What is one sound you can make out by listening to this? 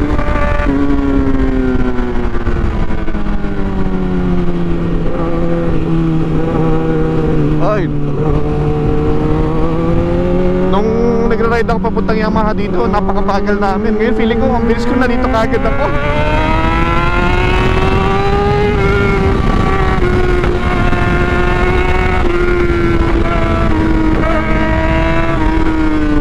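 A motorcycle engine hums steadily up close, its pitch rising and falling with speed.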